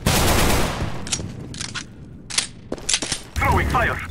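A gun is drawn with metallic clicks.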